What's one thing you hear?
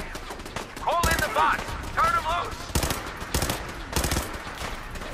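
A pistol fires several sharp shots.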